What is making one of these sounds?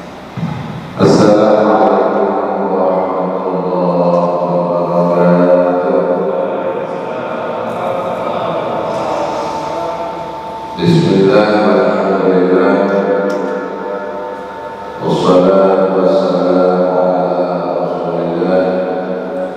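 A man chants in a long, drawn-out melodic voice through a microphone, in an echoing hall.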